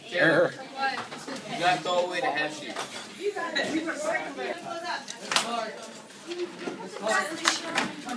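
Paper rustles as children handle sheets.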